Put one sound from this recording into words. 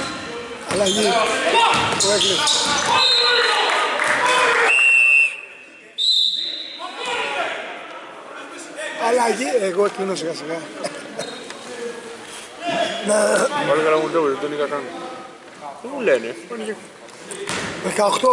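Several men shout and talk across a large echoing hall.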